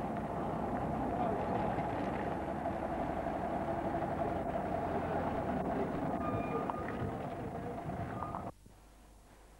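A truck's diesel engine idles with a steady rumble close by.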